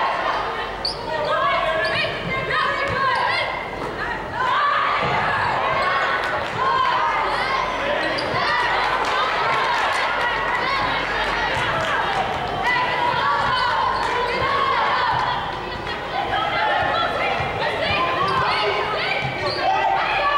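Young women players call out to each other in a large echoing gym.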